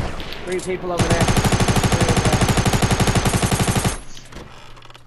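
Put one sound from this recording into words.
An automatic rifle fires in rapid bursts in a video game.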